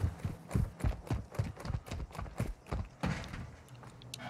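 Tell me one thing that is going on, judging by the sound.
Footsteps thud quickly and evenly on hard ground.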